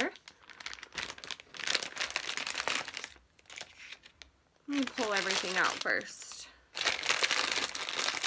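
A plastic wrapper crinkles and rustles between fingers.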